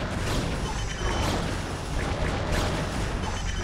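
Weapons fire in rapid, crackling bursts.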